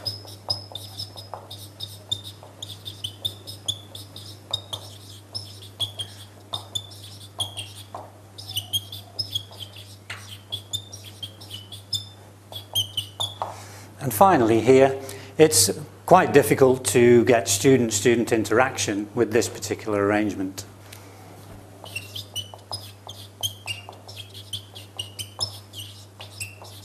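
A marker squeaks and taps as it writes on a board.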